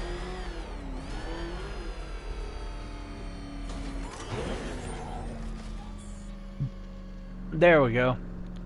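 A powerful car engine roars and revs.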